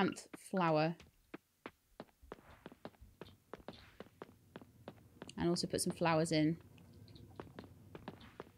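Light footsteps tap quickly along a path.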